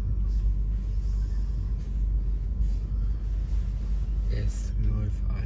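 A train rumbles steadily along the rails, heard from inside a carriage.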